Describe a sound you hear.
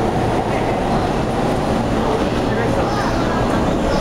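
An electric multiple-unit train pulls away from a platform.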